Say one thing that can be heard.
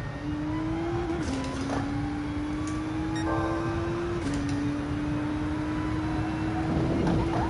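A racing car engine roars steadily, its pitch climbing and dropping briefly as it shifts gears.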